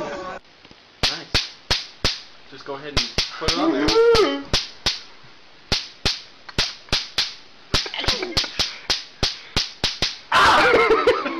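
An electric bug zapper snaps and crackles in sharp bursts.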